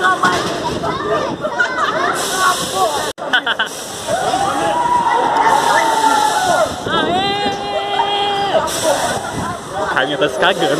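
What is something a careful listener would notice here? Young people chatter and shout around.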